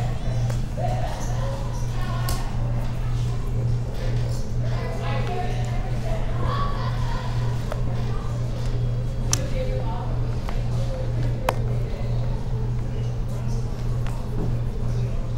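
Poker chips click and clack together.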